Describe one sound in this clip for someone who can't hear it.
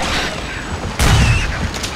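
A shotgun fires with a loud boom.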